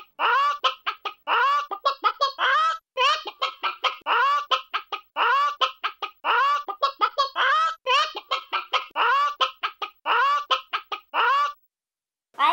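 A child imitates a hen, clucking rapidly over and over.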